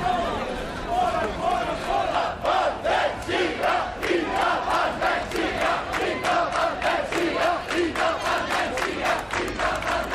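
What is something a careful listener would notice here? A crowd chants loudly in a steady rhythm.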